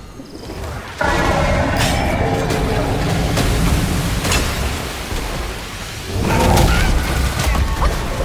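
Water crashes and sprays heavily during a fight.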